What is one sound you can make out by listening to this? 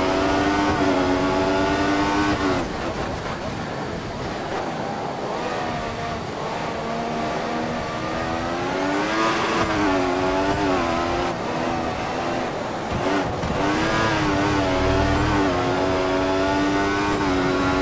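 A racing car engine screams at high revs, dropping in pitch as it slows for corners and rising again as it speeds up.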